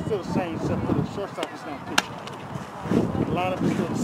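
A ball smacks into a catcher's glove.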